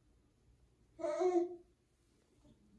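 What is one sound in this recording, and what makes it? A baby squeals briefly, close by.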